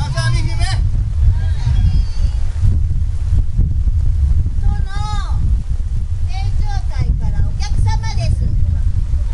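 Strong wind rumbles and buffets outdoors throughout.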